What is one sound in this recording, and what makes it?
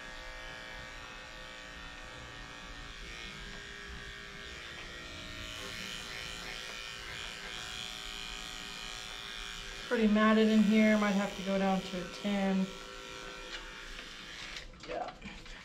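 Electric clippers buzz steadily.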